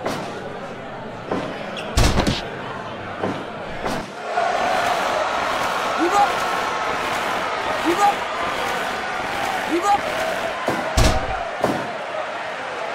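A crowd cheers and roars steadily.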